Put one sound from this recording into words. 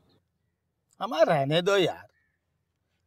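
A man answers calmly, close by.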